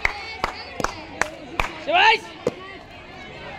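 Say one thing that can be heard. Hands clap sharply a few times.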